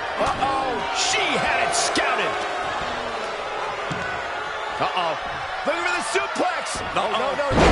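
Wrestlers' blows land with sharp smacks.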